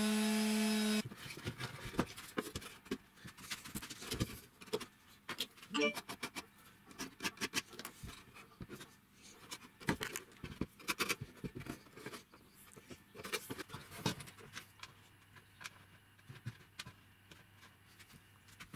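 Wooden boards knock and clatter against each other.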